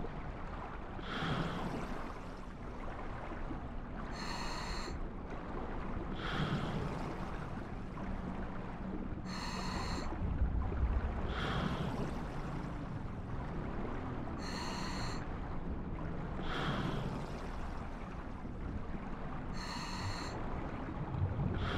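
Swimming strokes swish through water at a steady, repeating pace.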